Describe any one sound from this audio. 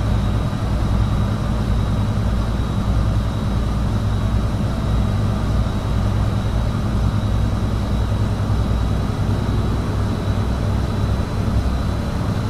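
A truck engine drones steadily at a low pitch while driving.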